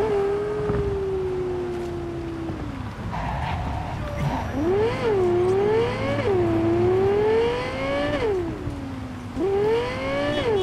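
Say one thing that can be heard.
A car engine revs up and down as it speeds along, shifting gears.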